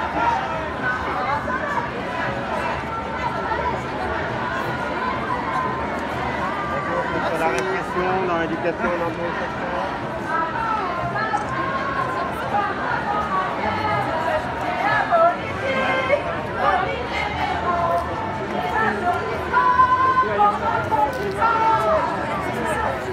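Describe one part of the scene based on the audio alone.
A large crowd of men and women chatters all around outdoors.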